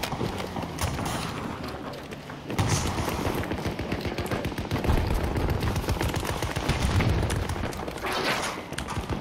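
Footsteps run over gravel and pavement.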